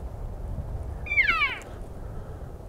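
An elk bugles with a high, rising whistle in the distance.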